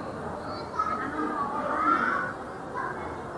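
Young women chat quietly nearby in a large echoing hall.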